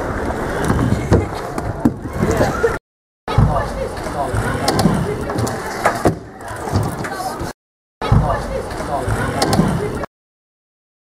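Scooter wheels roll and clatter on a wooden ramp.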